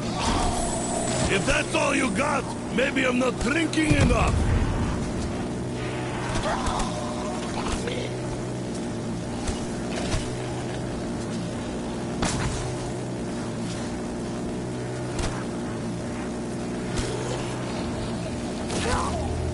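A video game gun fires in quick bursts.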